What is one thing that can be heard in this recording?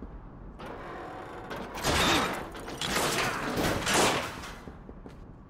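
A metal grate rattles and clanks as it is pulled open.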